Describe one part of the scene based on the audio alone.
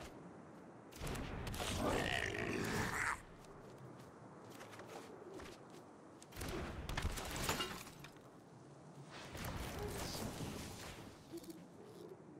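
Short game sound effects chime and whoosh as cards are played.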